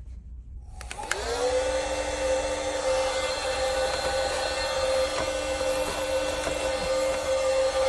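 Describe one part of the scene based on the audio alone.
A small electric blower whirs with a steady hum.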